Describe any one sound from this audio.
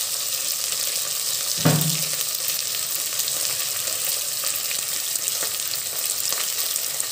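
Onions sizzle and crackle in hot oil in a pot.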